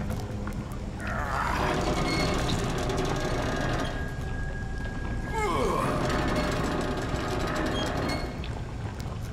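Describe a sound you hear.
A metal valve wheel creaks and squeals as it turns.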